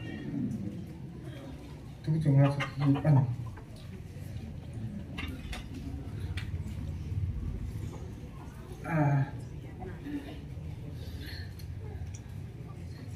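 A large crowd murmurs softly.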